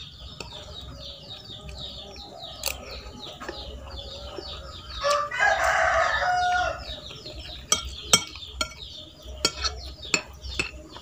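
A spoon clinks and scrapes against a plate.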